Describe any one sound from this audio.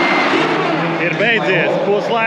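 A man talks excitedly close up.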